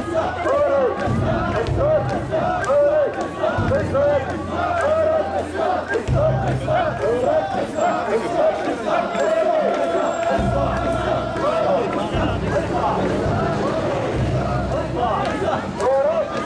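Metal ornaments on a portable shrine jingle as it sways.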